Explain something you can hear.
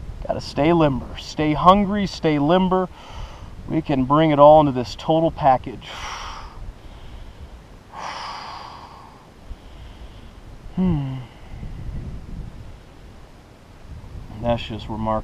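A man talks calmly and close by, pausing between phrases.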